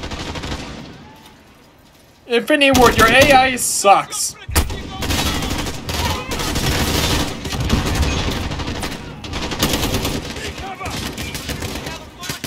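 A rifle fires short bursts of shots close by.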